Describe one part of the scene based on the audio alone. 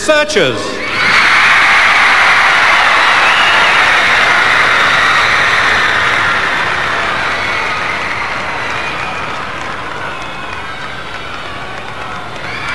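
A crowd's cheering swells loudly and slowly fades.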